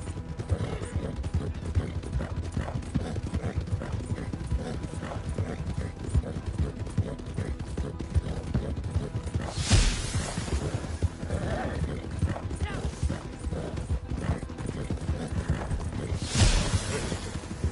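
Horse hooves gallop steadily on a dirt track.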